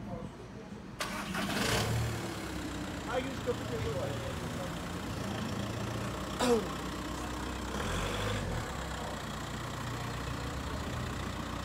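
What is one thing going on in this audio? A car engine idles and rumbles.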